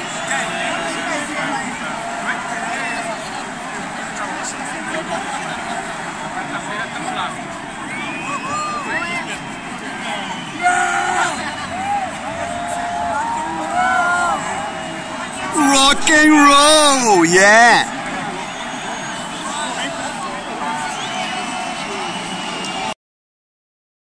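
Electronic music plays loudly through big loudspeakers in a large open space.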